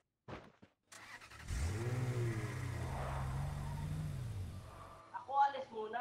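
A car engine starts, then revs and rumbles.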